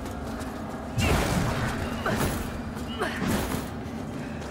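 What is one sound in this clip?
A wooden barricade cracks and splinters as a heavy weapon smashes through it.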